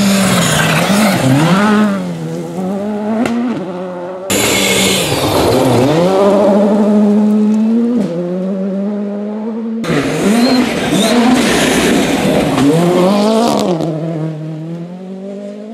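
Gravel sprays and rattles under spinning tyres.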